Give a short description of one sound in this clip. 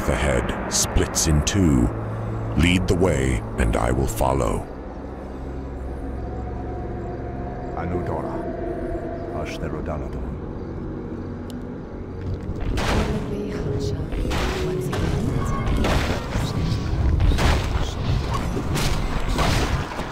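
Spell effects and weapon hits clash and crackle in a fight.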